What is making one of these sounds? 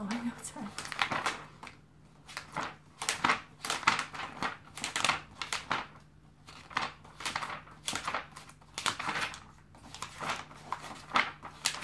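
Paper crackles as a sheet is folded.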